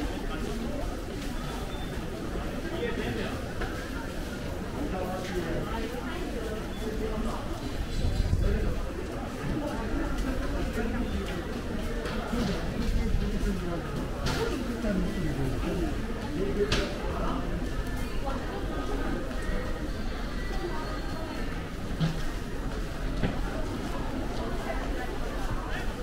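Many people chatter quietly in an echoing indoor hall.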